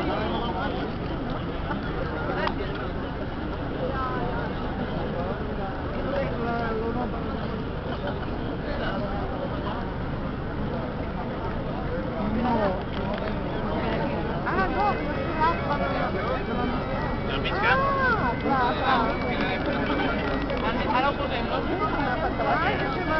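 A crowd of men and women murmurs and talks close by, outdoors.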